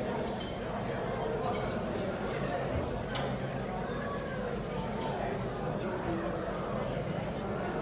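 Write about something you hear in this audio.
A crowd of adult men and women chatter nearby in a large echoing hall.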